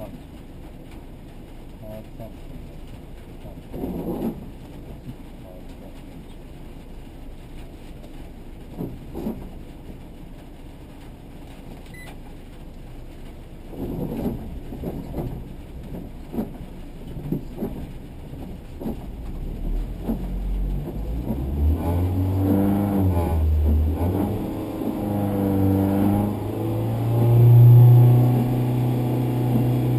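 A car engine idles steadily, then revs up loudly and roars.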